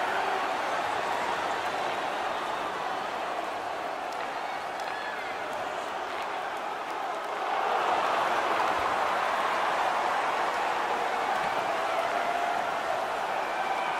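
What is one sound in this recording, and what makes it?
A large crowd roars steadily in an echoing arena, swelling louder partway through.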